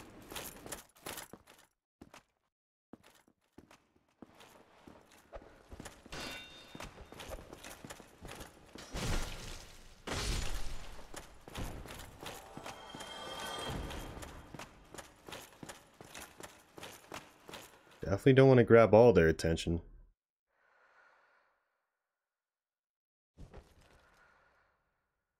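Armoured footsteps clank quickly on a stone floor.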